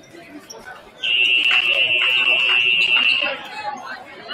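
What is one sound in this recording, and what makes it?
A referee's whistle blows in a long shrill blast.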